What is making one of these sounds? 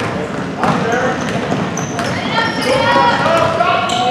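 A basketball thuds as it is dribbled on a wooden floor.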